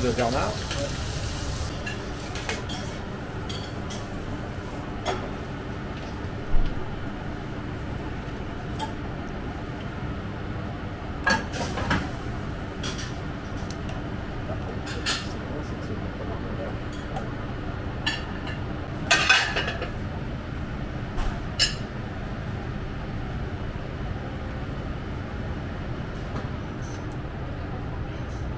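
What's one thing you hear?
Metal tongs clink against a metal tray.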